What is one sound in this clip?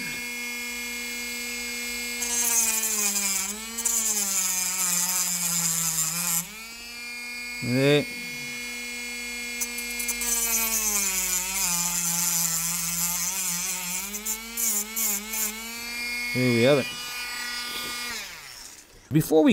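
A small rotary tool whirs at a high pitch, its whine dipping as it cuts.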